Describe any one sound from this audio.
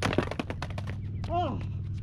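A skateboard clatters onto the ground.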